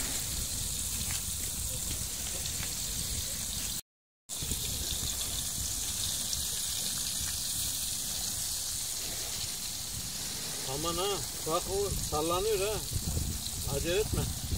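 Fish sizzles and crackles as it fries in hot oil.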